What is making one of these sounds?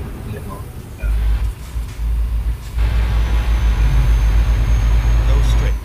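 A truck engine rumbles low and steady while driving.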